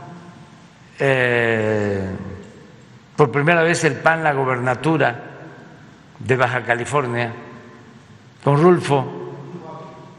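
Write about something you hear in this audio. An elderly man speaks slowly and deliberately into a microphone, in bursts with pauses, in a room with some echo.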